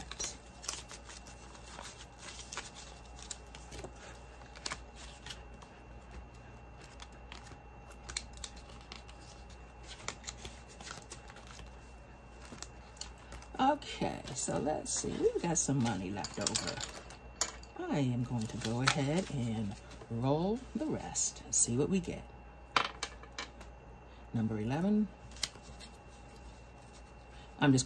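Paper banknotes rustle and flick as they are counted by hand.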